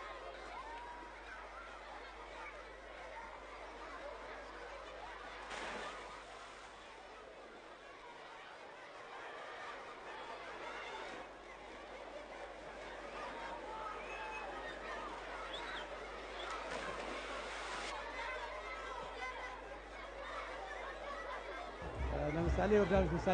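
Water splashes as children wade and play.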